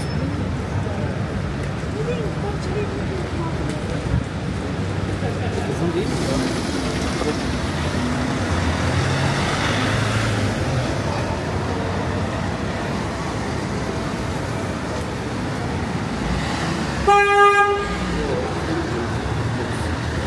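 People chatter nearby on a busy street.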